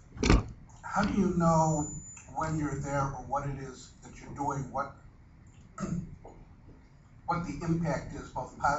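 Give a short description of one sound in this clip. A man in the audience speaks into a microphone from across the room.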